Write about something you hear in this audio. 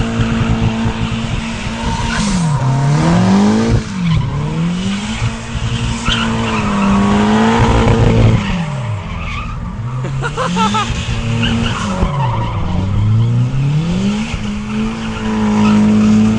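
Tyres squeal on tarmac as a car spins.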